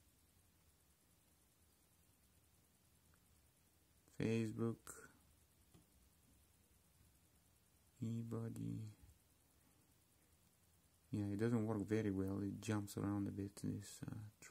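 Phone buttons click softly.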